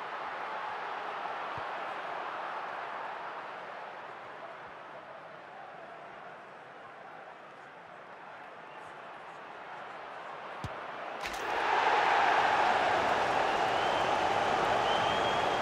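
A stadium crowd murmurs and roars steadily, swelling louder near the end.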